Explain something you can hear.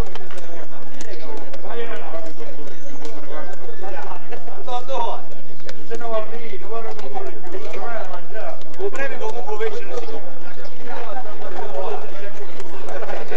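Several men and women chat at once close by, outdoors.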